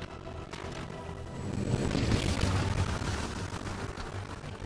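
Fantasy battle sound effects clash, whoosh and crackle.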